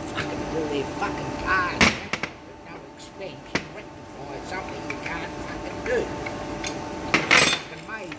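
Metal tools clank against a metal part.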